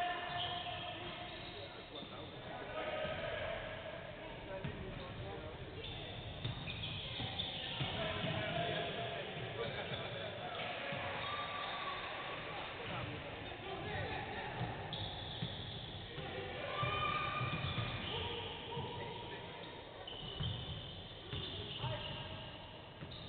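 A basketball bounces on a hard court, echoing in a large empty hall.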